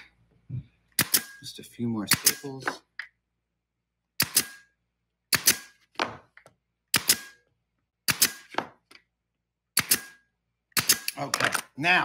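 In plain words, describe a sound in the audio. A pneumatic nailer fires with sharp snaps.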